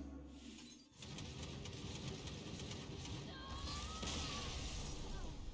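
A magical spell whooshes and shimmers.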